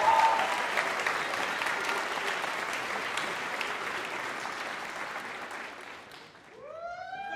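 An audience applauds in a large hall and the applause fades.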